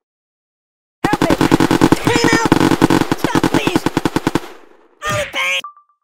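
Firecrackers pop and crackle in a rapid, loud burst.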